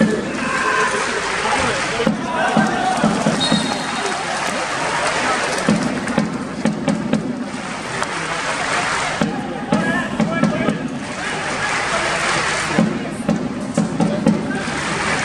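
A large stadium crowd chants and cheers loudly throughout.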